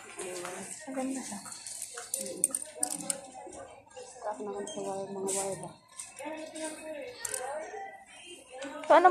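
Two young women talk casually close by.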